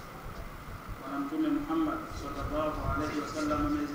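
A man speaks calmly into a clip-on microphone, heard through a microphone.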